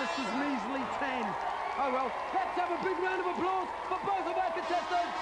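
A woman shouts with excitement into a microphone.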